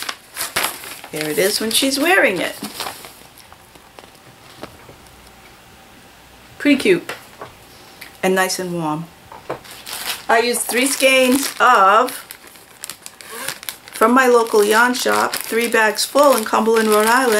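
An older woman talks calmly and closely to the listener.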